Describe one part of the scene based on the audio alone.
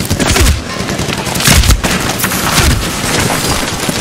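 An assault rifle is reloaded with metallic clicks.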